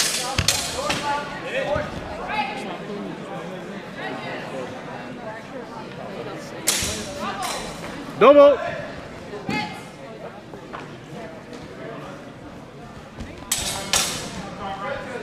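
Steel longswords clash in a large echoing hall.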